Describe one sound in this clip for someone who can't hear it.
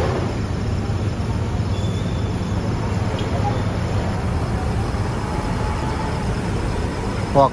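A large bus engine rumbles as the bus pulls slowly away.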